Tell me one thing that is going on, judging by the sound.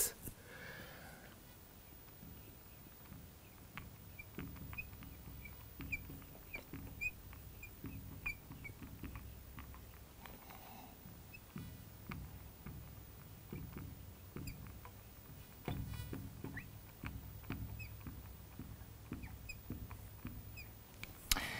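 A marker squeaks faintly as it writes on glass.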